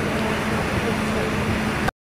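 A bus engine idles nearby with a low hum.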